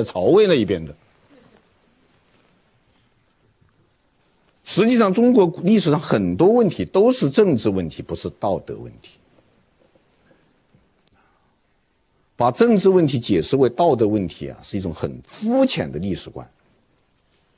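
A middle-aged man lectures calmly into a microphone, pausing between phrases.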